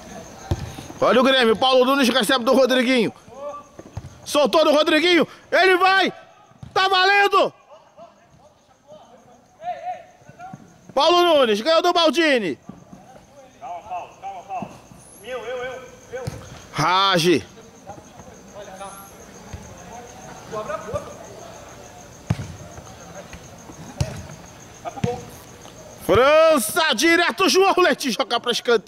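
Young men shout loudly.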